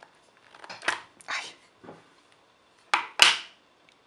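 A plastic case lid clicks open.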